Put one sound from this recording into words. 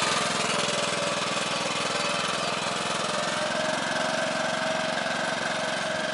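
A small tractor engine chugs steadily nearby.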